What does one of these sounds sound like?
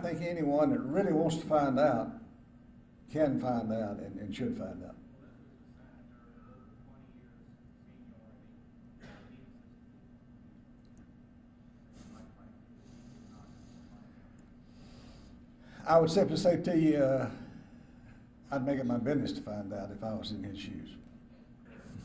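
An elderly man speaks slowly and deliberately into a microphone in a large room.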